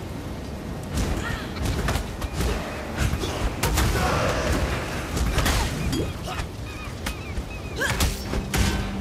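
Spells burst with sharp, crackling blasts.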